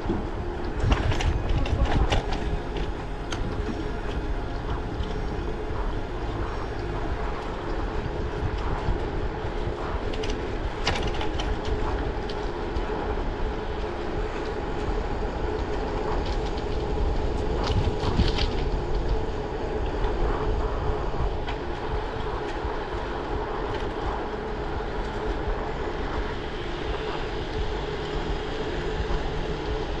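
Wind rushes steadily past a moving bicycle.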